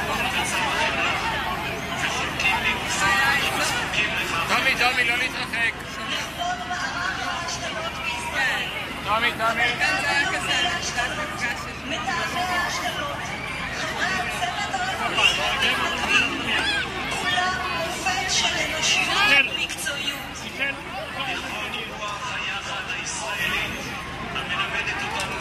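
Men and women talk nearby with animation.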